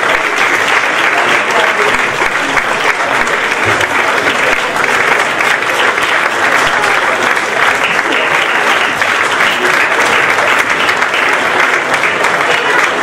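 An audience applauds steadily in a large echoing hall.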